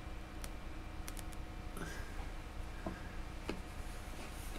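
A hollow plastic model knocks and rattles softly as a hand lets go of it.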